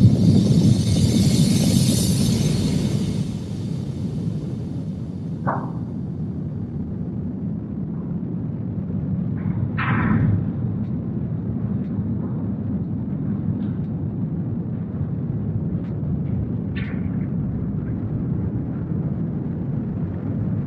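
A huge engine rumbles deep and steady.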